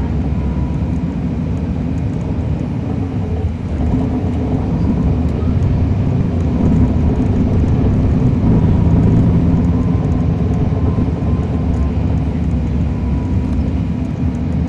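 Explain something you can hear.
A diesel transit bus engine drones, heard from on board.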